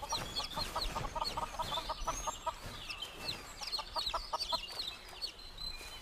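Chickens cluck nearby.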